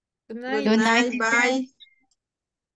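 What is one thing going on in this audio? A woman speaks briefly with animation through an online call.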